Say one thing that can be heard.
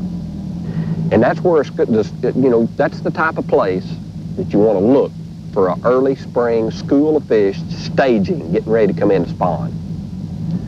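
A middle-aged man talks with animation, close by, outdoors.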